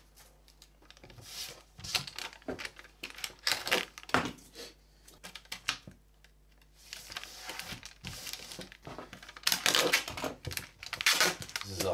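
Thin metal foil crinkles and rustles as hands smooth it.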